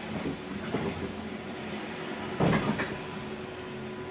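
A passing bus rushes by close outside.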